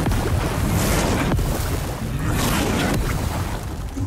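Fire roars and crackles in bursts.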